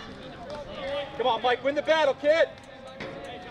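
A young man shouts encouragement loudly.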